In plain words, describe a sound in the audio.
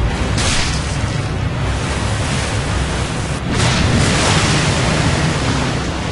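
Water splashes and churns behind a boat.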